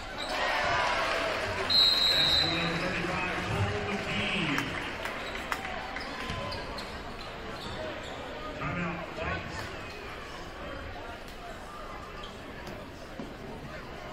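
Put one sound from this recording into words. A crowd cheers loudly in a large echoing gym, then slowly quiets.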